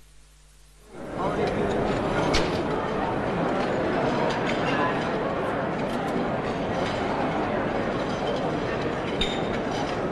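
A crowd of men and women chatters loudly in a large hall.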